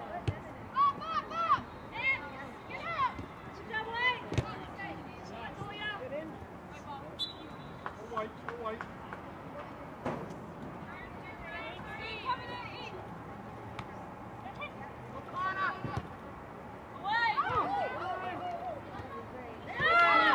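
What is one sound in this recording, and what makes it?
Young women shout and call out across an open field outdoors.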